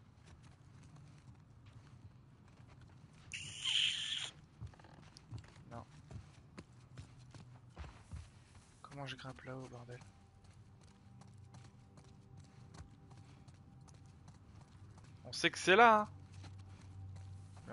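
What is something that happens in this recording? Footsteps tread on hard ground at a steady walking pace.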